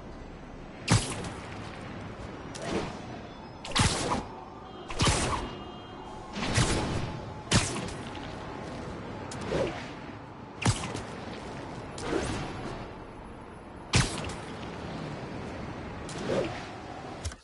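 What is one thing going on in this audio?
Web lines shoot out with sharp thwips again and again.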